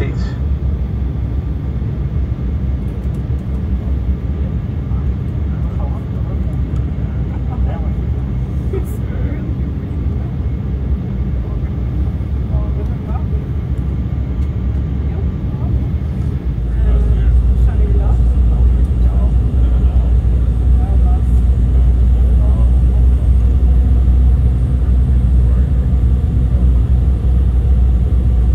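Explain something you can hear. A plane's engines roar steadily with a deep, low rumble in the cabin.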